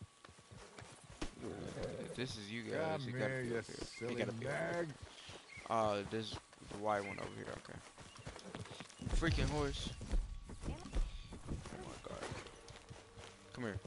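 Footsteps run over grass and gravel.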